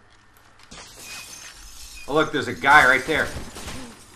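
Glass shatters as a window breaks.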